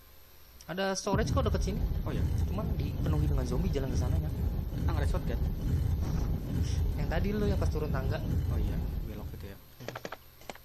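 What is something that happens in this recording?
A heavy stone statue grinds loudly as it turns.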